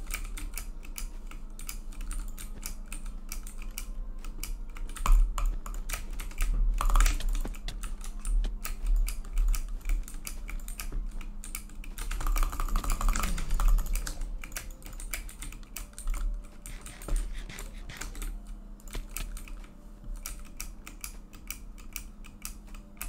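Game blocks are placed with rapid, soft clicking sounds.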